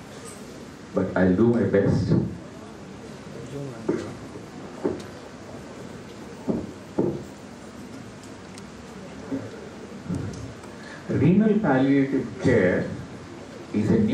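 An elderly man speaks calmly into a microphone, heard through a loudspeaker.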